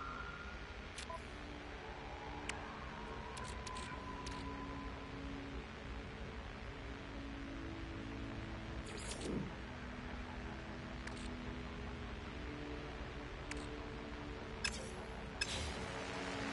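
Soft electronic menu clicks sound now and then.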